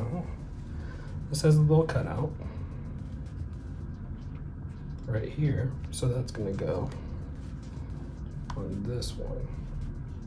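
Plastic headphone parts click and rub as they are handled close by.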